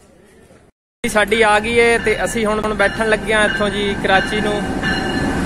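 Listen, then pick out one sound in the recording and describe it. A train horn blares.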